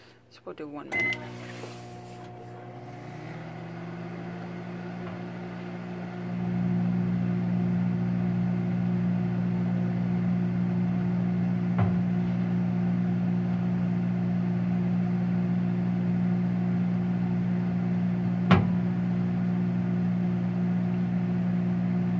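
A microwave oven hums steadily as it runs.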